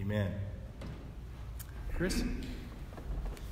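A man speaks briefly close by.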